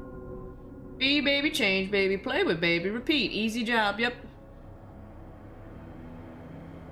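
A magical sparkling shimmer chimes softly.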